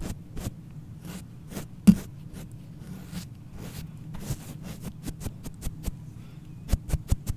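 A brush taps and brushes close against a microphone, with soft crisp clicks.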